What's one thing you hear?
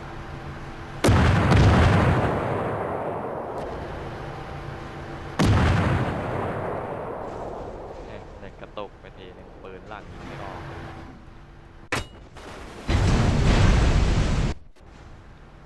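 Heavy naval guns fire with loud booming blasts that rumble away.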